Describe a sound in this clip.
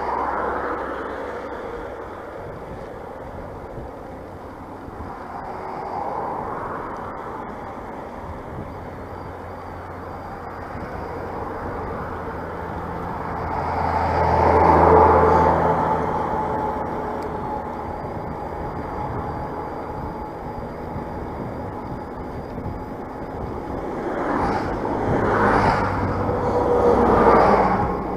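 Traffic roars past steadily on a road outdoors.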